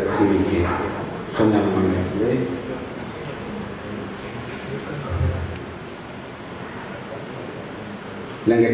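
A middle-aged man speaks formally into a microphone, heard through loudspeakers.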